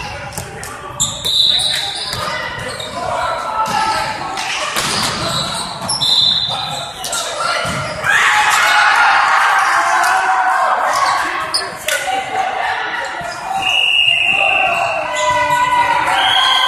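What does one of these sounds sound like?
Young men call out and talk loudly in a large echoing hall.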